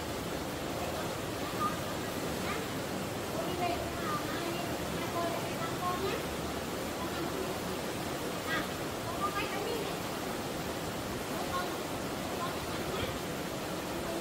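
A young woman talks softly with a child nearby.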